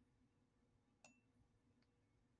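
A lid clicks against a glass jar.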